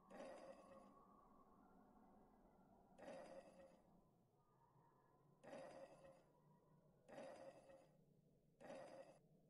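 A small game piece slides across a board with a short scraping whoosh, again and again.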